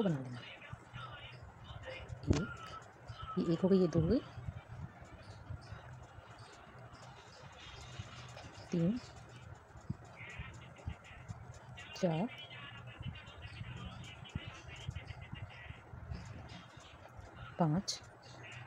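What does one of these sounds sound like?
A crochet hook softly rustles and ticks through yarn.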